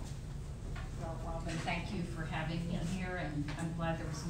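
An elderly woman speaks calmly into a microphone in an echoing room.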